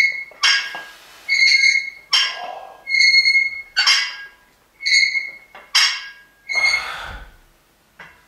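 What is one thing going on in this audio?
Metal weight plates clink and ring sharply again and again.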